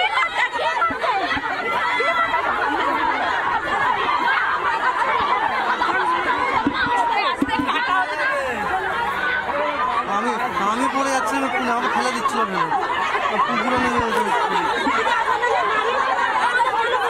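A crowd of women shout and argue loudly outdoors.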